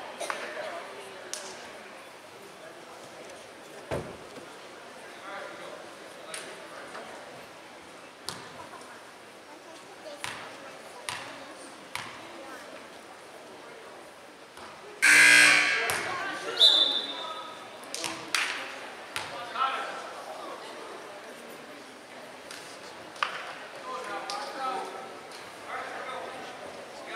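Spectators chatter and cheer in the stands.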